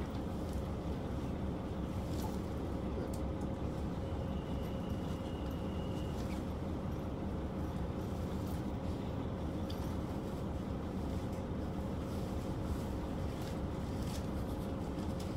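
A cloth banner flaps in the wind.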